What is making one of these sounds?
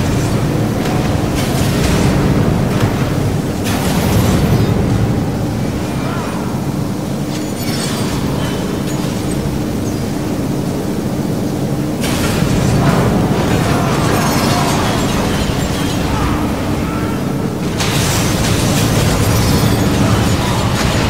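Steady music with a low droning pulse plays throughout.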